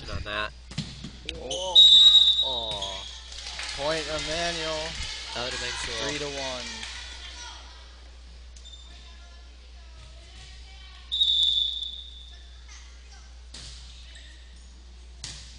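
A volleyball is struck with a smack.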